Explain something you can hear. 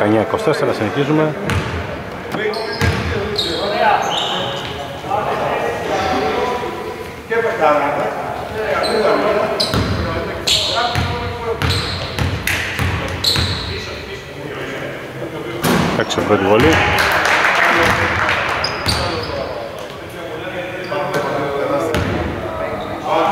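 Men shout and call out across a large echoing hall.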